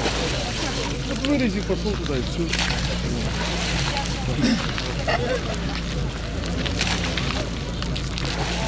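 Several men talk nearby outdoors.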